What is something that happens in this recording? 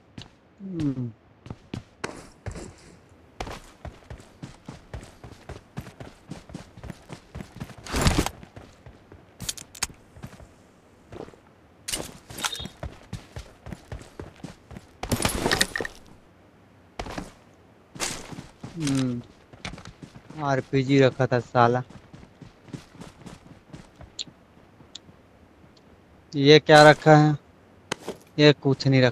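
Footsteps patter quickly over grass and dirt.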